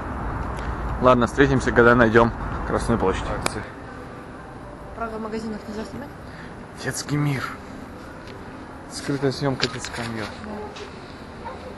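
A young woman talks with animation close by.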